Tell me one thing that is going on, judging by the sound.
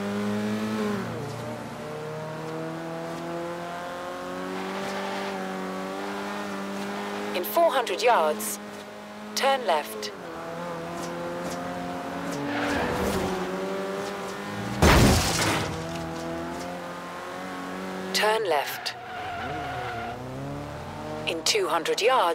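A car engine roars steadily, rising and dropping in pitch as the gears change.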